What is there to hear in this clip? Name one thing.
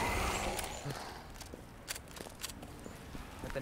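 Footsteps tap slowly on pavement.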